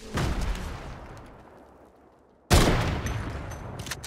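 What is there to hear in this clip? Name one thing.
A rifle fires a single loud, sharp shot.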